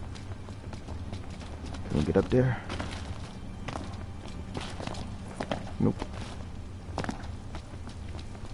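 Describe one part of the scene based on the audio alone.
Footsteps clank on metal as a man runs.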